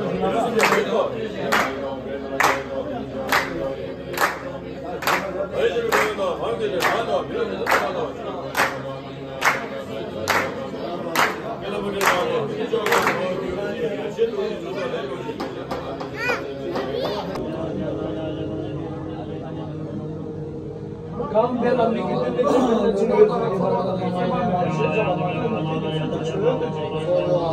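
A group of men chant together in low, steady voices.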